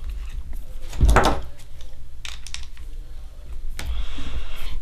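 Small metal parts click and clink.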